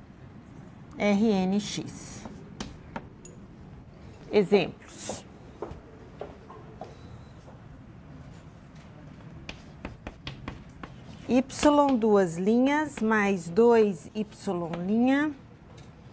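A woman speaks calmly, as if teaching.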